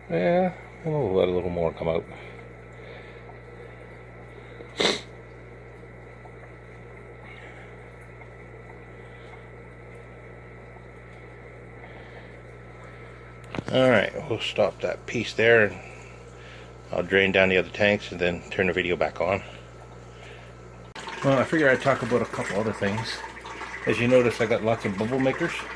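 A water pump hums steadily.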